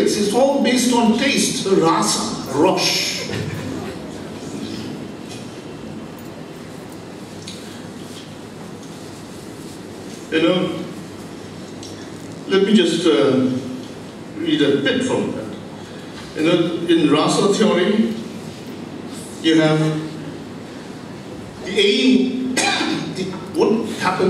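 A man speaks into a microphone, heard over loudspeakers in an echoing hall, with pauses between phrases.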